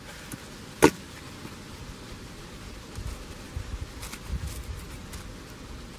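A shovel scrapes and digs into dry soil.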